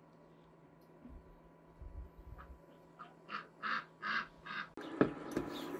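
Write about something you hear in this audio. Hands squish and knead soft dough.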